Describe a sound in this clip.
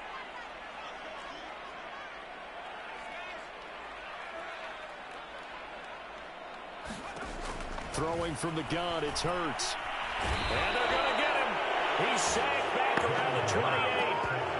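A large stadium crowd roars, growing louder.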